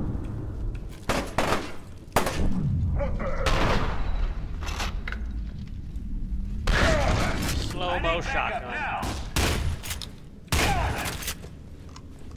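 Gunshots crack sharply in bursts.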